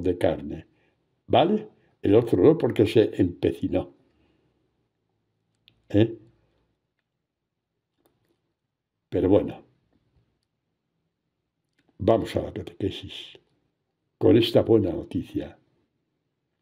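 A man speaks slowly and prayerfully through a microphone, pausing between phrases.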